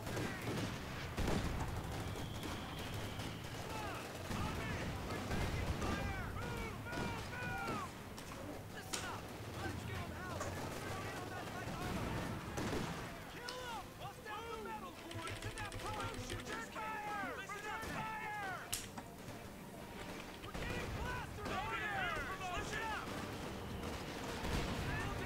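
Rifles and machine guns fire in rapid bursts.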